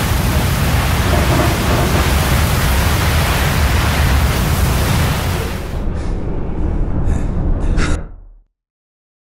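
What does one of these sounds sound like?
A strong wind roars and howls through a dust storm.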